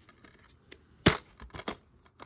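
A plastic case snaps open with a sharp click.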